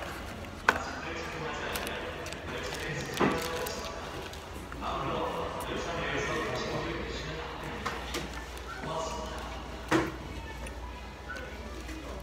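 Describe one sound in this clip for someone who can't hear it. Paper wrapping rustles and crinkles close by.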